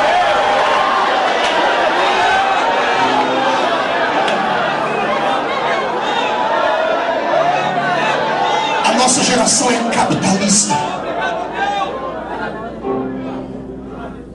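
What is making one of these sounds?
A man preaches loudly and with fervour through a microphone and loudspeakers.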